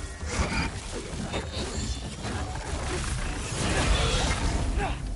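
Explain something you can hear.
Heavy blows strike creatures in a fight.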